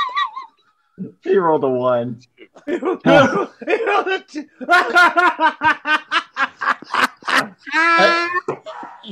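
Men laugh loudly over an online call.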